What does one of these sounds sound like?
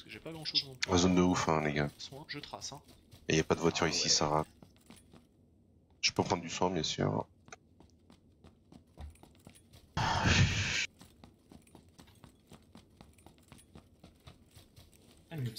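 Footsteps patter quickly over dry grass and gravel.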